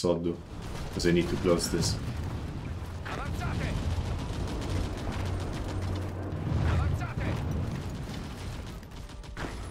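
Gunfire and explosions rumble in the distance.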